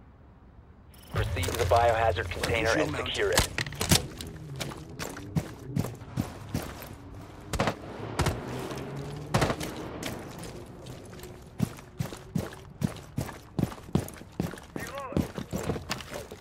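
Footsteps thud quickly on hard ground and gravel.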